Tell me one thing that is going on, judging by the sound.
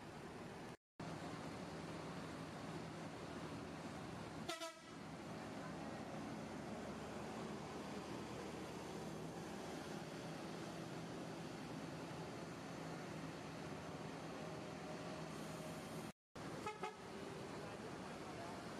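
A large bus engine rumbles steadily as the bus drives slowly past close by.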